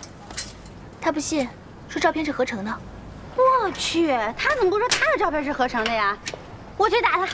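Another young woman answers with agitation.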